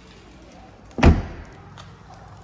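A car boot lid slams shut with a thud.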